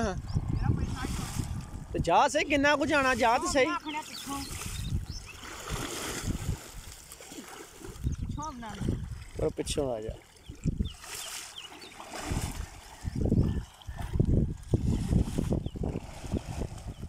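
A boy splashes while swimming in water.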